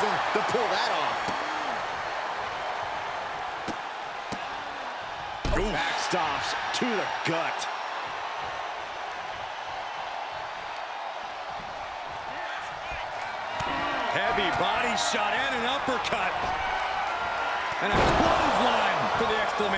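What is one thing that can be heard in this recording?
Bodies slam heavily onto a wrestling mat.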